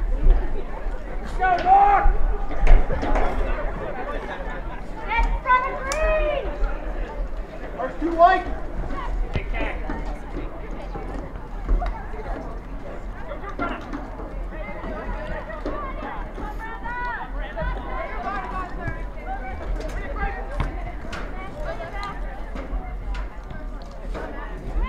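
Spectators call out and cheer from a distance.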